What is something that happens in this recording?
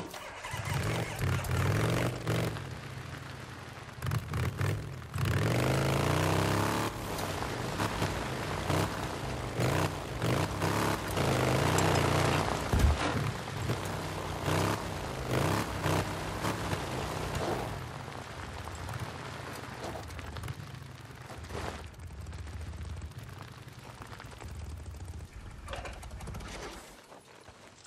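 A motorcycle engine revs as the bike rides along a dirt track.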